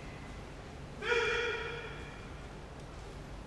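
A man calls out a long, drawn-out cry in a large echoing hall.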